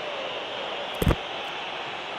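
A football is struck with a dull thud.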